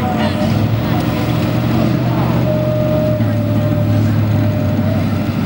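A truck engine roars loudly and steadily close by.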